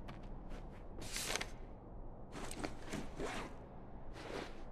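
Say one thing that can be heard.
A sheet of paper rustles as it is picked up and unfolded.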